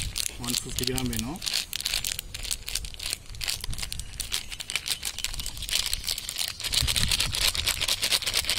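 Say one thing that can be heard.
A plastic packet crinkles.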